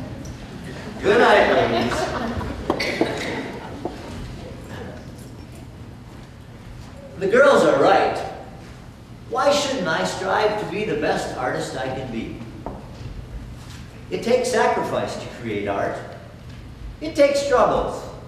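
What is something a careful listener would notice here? A man speaks with animation, heard from the audience in a large hall.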